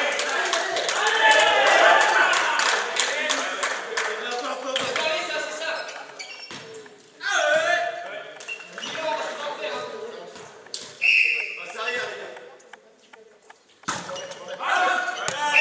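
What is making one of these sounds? A volleyball thumps against hands and the floor.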